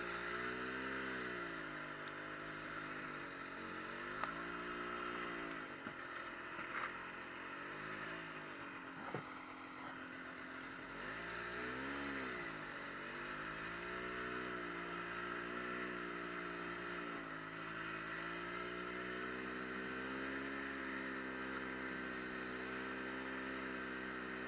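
A snowmobile engine drones steadily close by, rising and falling in pitch.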